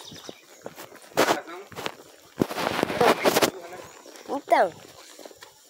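A horse's hooves thud softly on dirt.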